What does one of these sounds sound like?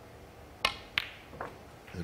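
A snooker ball clicks against another ball.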